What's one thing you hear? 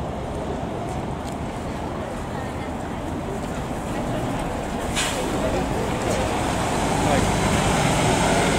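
An articulated diesel city bus drives past close by.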